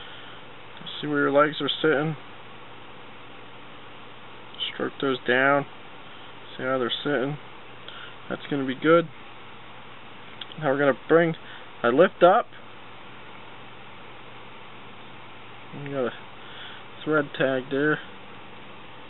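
A man speaks calmly and close by, in short phrases with pauses.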